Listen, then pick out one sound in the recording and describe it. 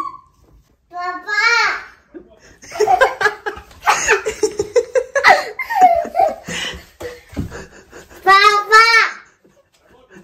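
A toddler squeals and laughs excitedly close by.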